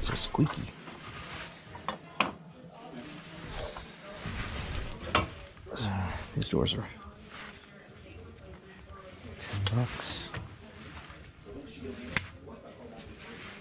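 Metal hardware clinks and rattles as it is handled.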